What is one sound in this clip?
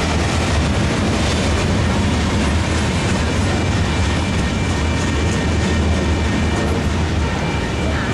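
A car drives by close.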